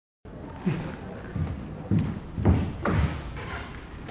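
Footsteps thud on a wooden floor in an echoing room.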